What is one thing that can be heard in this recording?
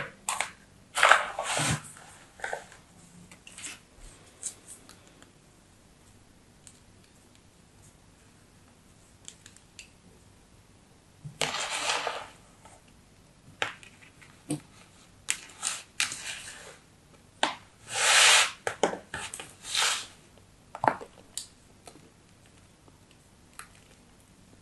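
Sand crumbles and rustles in a plastic cup.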